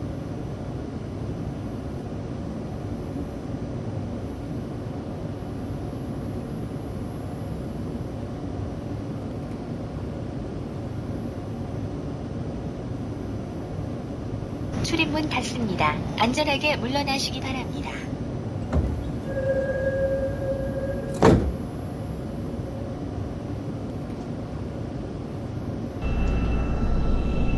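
A train's machinery hums with a steady low rumble.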